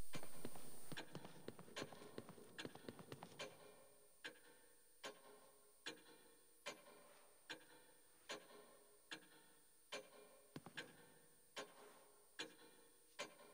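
Footsteps thud at an even pace.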